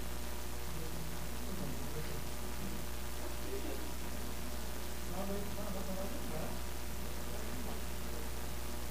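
A man speaks calmly and faintly over a microphone in a large echoing hall.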